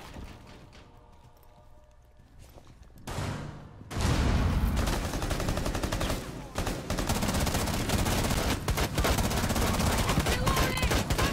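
A young man talks into a microphone with animation.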